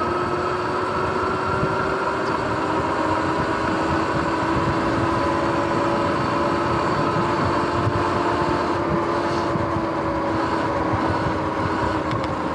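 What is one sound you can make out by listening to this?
Wind rushes steadily past while riding outdoors.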